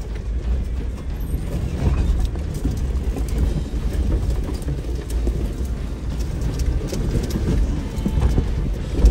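Tyres crunch and rattle over rough gravel.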